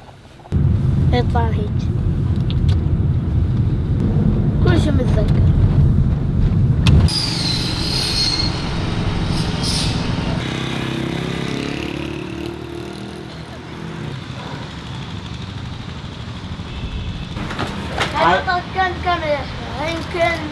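A young boy speaks calmly nearby.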